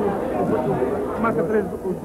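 A middle-aged man talks up close.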